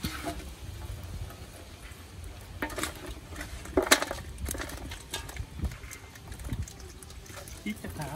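Small fish flap and splash in a shallow basin.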